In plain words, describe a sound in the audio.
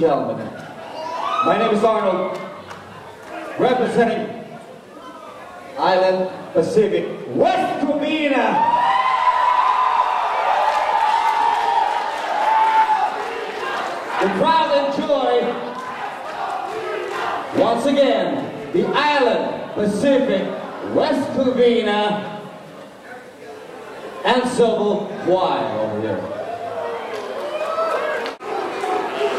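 A man speaks with animation into a microphone over loudspeakers in a large hall.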